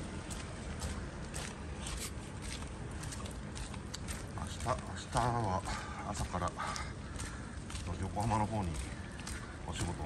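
Footsteps fall on wet pavement.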